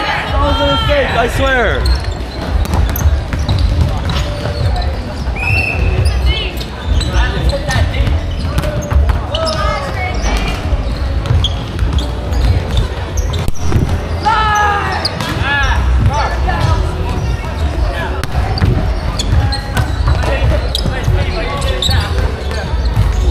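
Many young people shout and chatter throughout a large echoing hall.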